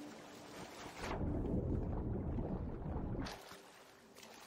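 A deep muffled rush of water fills the ears underwater.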